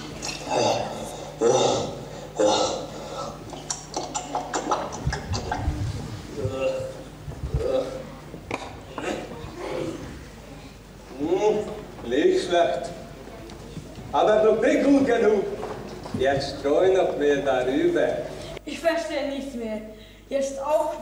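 A man speaks with animation on a stage, heard through a microphone.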